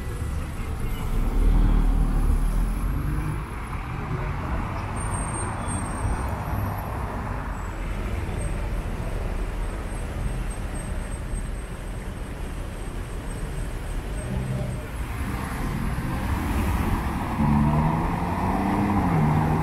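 A sports car's engine revs loudly.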